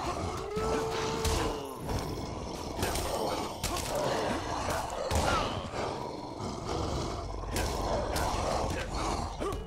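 Monsters snarl and growl.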